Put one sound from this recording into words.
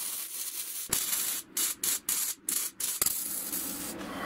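A welder crackles and sputters in short bursts.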